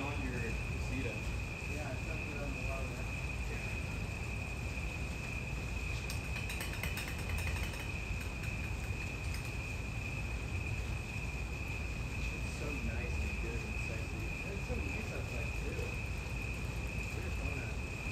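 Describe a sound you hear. Young men talk casually nearby, outdoors.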